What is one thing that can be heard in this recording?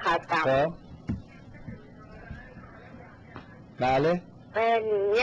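A young man speaks into a microphone in short bursts.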